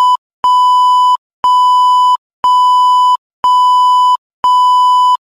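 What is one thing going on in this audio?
A high electronic test tone beeps in long, even pulses about once a second.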